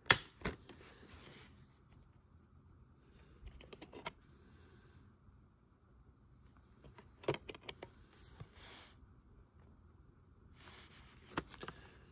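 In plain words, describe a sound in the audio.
A plastic disc case clicks and snaps as it is handled.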